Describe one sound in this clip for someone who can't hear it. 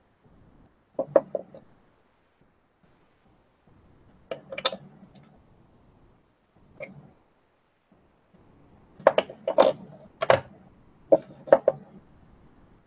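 Small metal tools tap and clink against a hard tabletop.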